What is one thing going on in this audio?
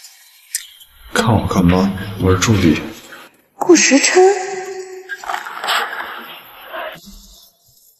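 A young man speaks sharply close by.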